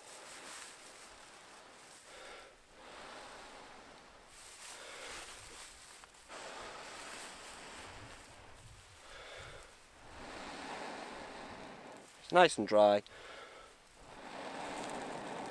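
A man blows hard into a bundle of dry tinder.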